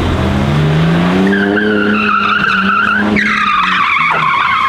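Tyres screech on pavement as a car drifts.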